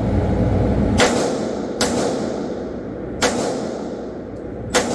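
Gunshots ring out one at a time and echo in a large hard room.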